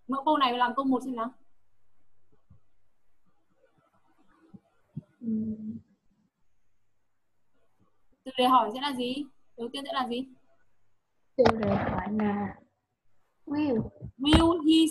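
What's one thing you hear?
A young woman speaks calmly through an online call, as if teaching.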